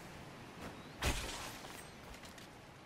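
A magic blast crackles and bursts.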